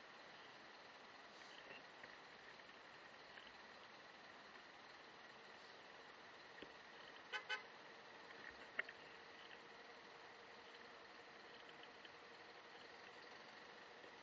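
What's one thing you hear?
A car engine idles quietly nearby.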